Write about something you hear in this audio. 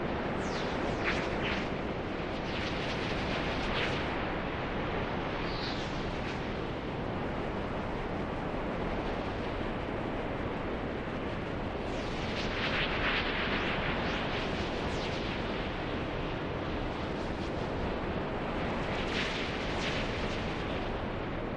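A spaceship engine roars steadily with rushing whooshes.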